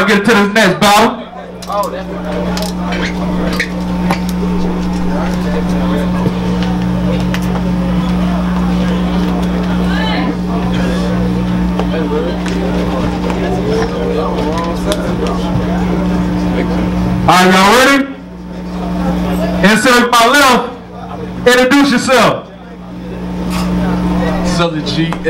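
A crowd murmurs and calls out in a noisy room.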